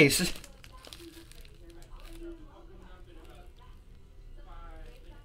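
Plastic sleeves crinkle and rustle in hands.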